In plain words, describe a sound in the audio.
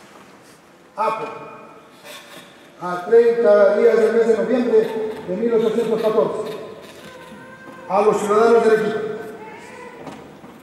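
A man declaims loudly on a stage, his voice echoing in a large hall.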